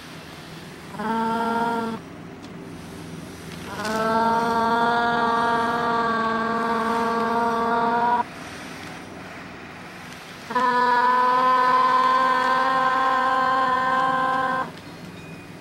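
A young woman sings long, steady held notes.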